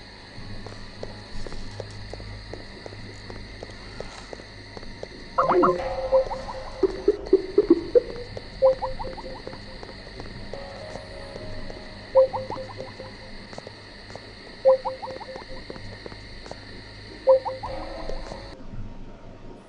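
Footsteps tap on a stone street.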